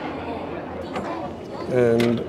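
A plastic flap on a vending machine is pushed open with a soft knock.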